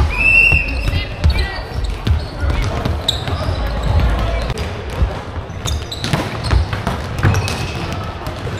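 Sneakers squeak sharply on a hard floor, in a large echoing hall.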